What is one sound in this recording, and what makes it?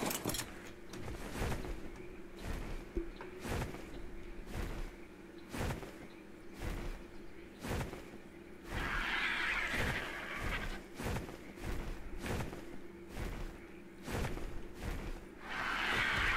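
Large wings flap in steady, rhythmic beats.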